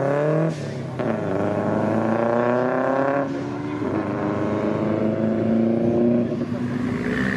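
A sports car engine revs up and wails as the car speeds off.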